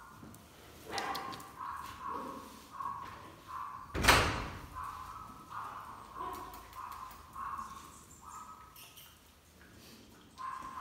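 A small dog whimpers in short, repeated high cries.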